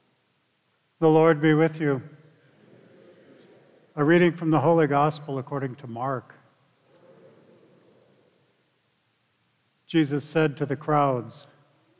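A man chants a sung prayer through a microphone in a large echoing hall.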